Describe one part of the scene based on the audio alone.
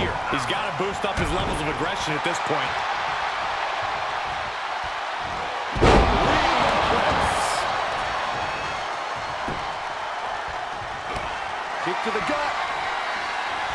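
A crowd cheers loudly and steadily throughout.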